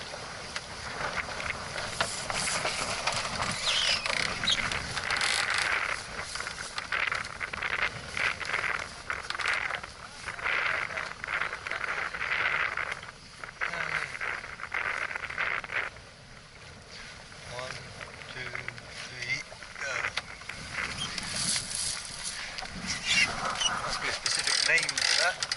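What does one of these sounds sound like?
Water splashes and rushes against a boat's hull.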